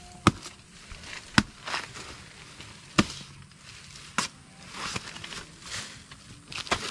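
Dry leaves rustle and crackle as they are moved.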